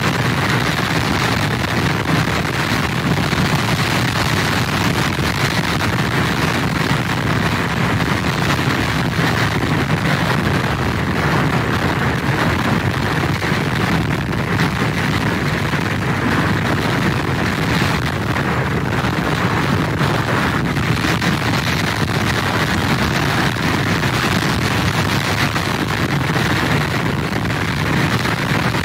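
Heavy surf crashes and roars against a pier's pilings.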